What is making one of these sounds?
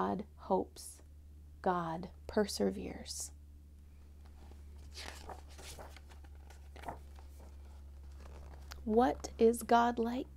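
A young woman speaks warmly and clearly close to a microphone.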